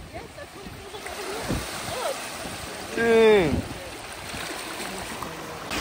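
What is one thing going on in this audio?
Shallow sea water washes and swirls over rocks close by.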